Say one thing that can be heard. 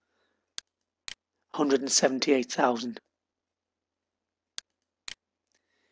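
A computer mouse clicks twice in quick succession.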